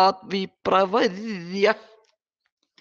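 An elderly woman chants in a melodic voice through a microphone.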